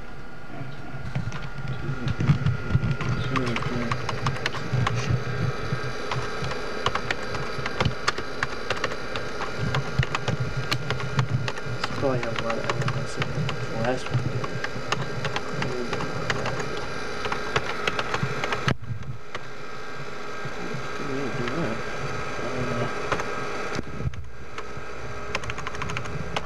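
Keys clatter quickly as someone types on a computer keyboard.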